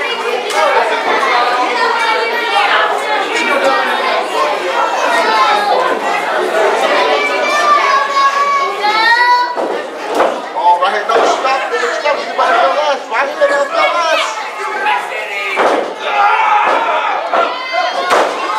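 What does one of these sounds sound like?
A crowd of people talk and shout.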